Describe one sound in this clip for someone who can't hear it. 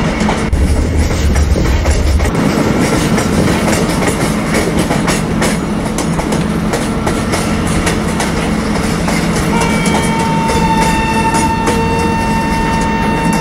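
An electric locomotive hums steadily as it runs along the track.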